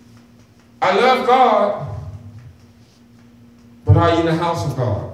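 A man preaches with animation through a microphone and loudspeakers in an echoing room.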